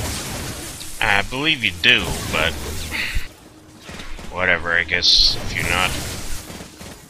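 A man talks through a microphone.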